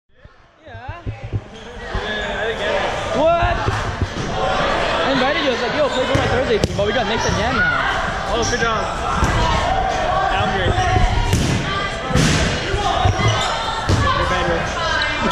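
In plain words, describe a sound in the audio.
Young men and women shout and call out across a large echoing gym.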